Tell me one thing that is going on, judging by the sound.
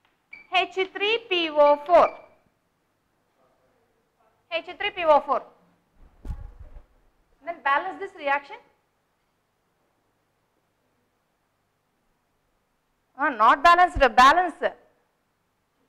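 A woman speaks calmly and clearly, close by, with pauses.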